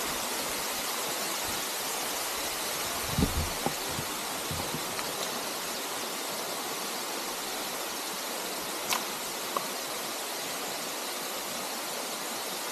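A waterfall rushes and splashes steadily, outdoors.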